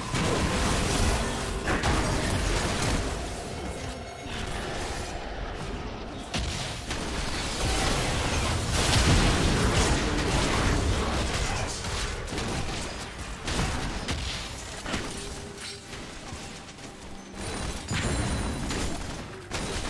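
Game spells blast and crackle in a busy fight.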